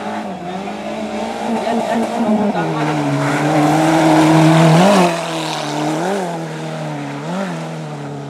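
Tyres splash and crunch through mud and gravel.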